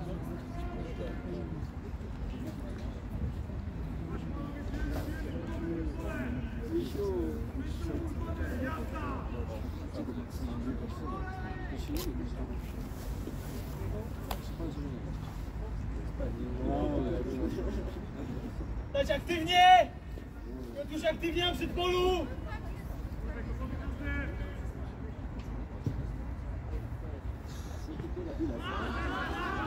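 Players shout and call to each other across an open outdoor field.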